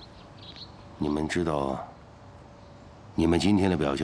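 A man speaks in a low, tense voice nearby.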